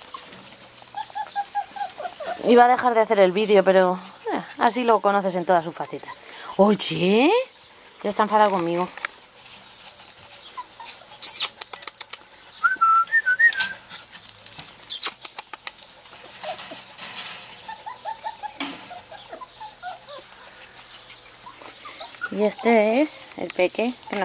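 A small puppy yelps and whines in high pitched bursts.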